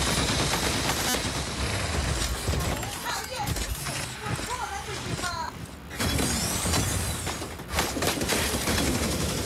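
Mechanical engines rumble and roar in a video game.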